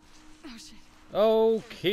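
A young woman exclaims in alarm.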